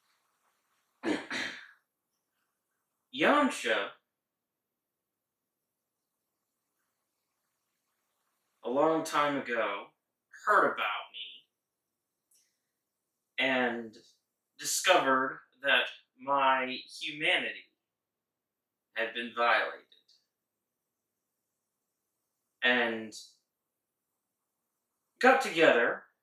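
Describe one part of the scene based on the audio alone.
A man sings loudly into a microphone in short phrases, with silent pauses between them.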